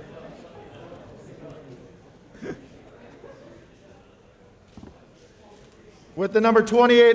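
A crowd murmurs quietly in a large room.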